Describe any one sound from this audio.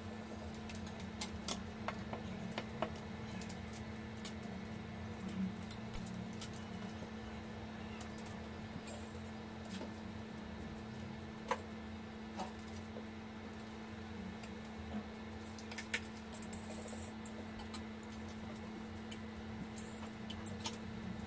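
Fingers press and tap soft clay on a countertop.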